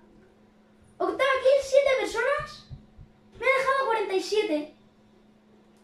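A boy talks excitedly into a nearby microphone.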